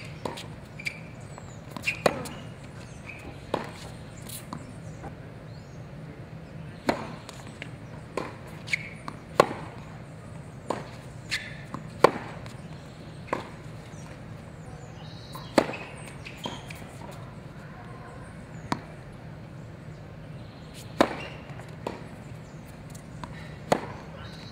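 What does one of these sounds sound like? Tennis rackets strike a ball back and forth outdoors.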